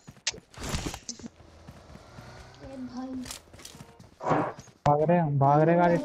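A figure crawls over rustling grass and dirt.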